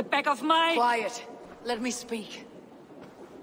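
A woman speaks quietly and firmly, close by.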